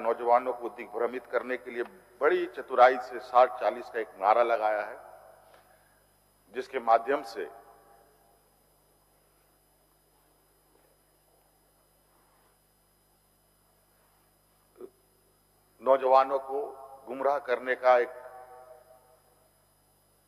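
A man speaks into a microphone in a measured, formal voice, pausing between phrases.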